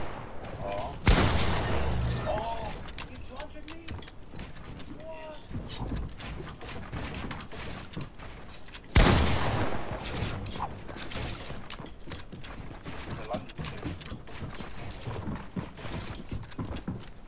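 Video game building pieces snap into place with quick clicks.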